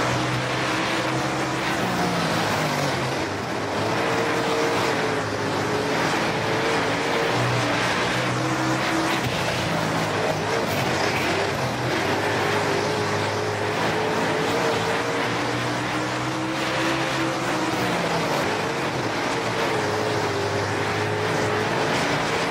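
Tyres skid and slide on loose dirt.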